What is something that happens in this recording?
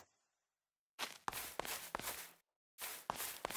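A sword swishes through the air in quick strokes.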